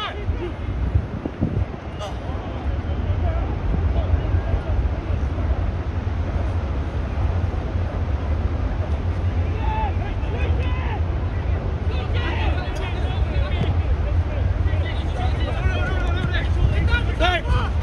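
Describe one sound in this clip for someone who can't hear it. Wind blows steadily across an open outdoor field.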